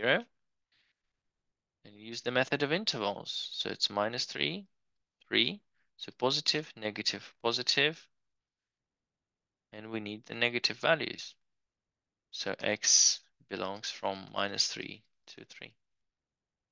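A man explains calmly into a close microphone, in short bursts with pauses.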